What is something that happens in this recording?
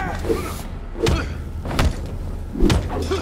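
Blades slash and strike flesh with sharp, heavy hits.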